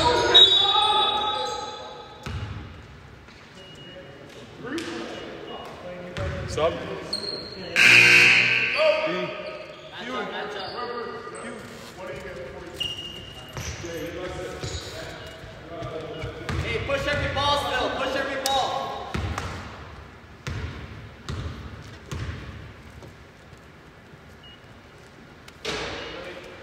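Young men shout to each other in an echoing hall.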